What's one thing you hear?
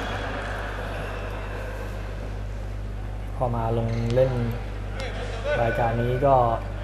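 Spectators murmur in a large echoing indoor hall.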